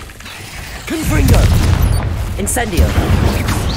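A spell blasts with a fiery burst.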